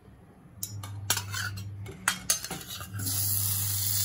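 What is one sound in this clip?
Butter cubes drop with soft thuds into a metal pan.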